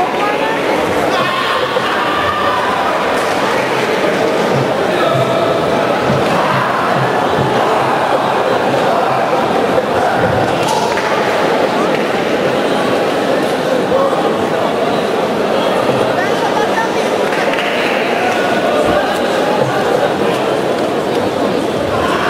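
A crowd cheers and chatters loudly in a large echoing hall.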